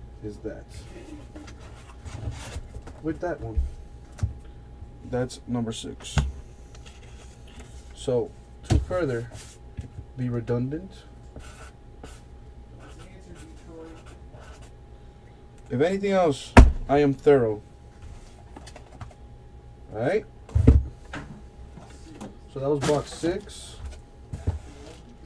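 A cardboard box is set down on a table with soft knocks.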